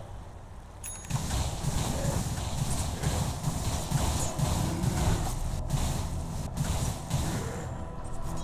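Weapons strike with sharp hits.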